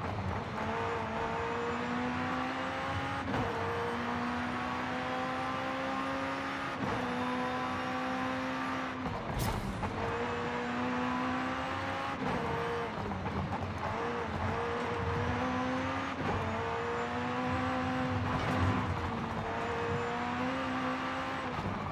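A high-revving car engine roars, climbing in pitch through each gear and dropping sharply at every gear change.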